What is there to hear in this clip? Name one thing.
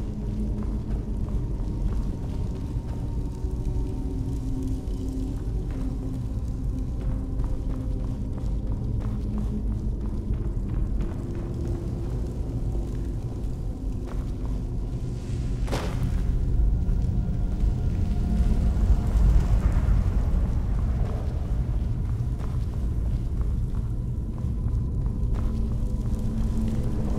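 Armoured footsteps thud on wooden planks and stone.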